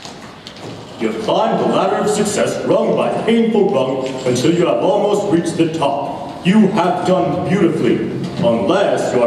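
A man sings loudly in a large echoing hall.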